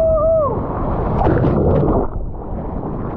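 A wave breaks with a rushing roar.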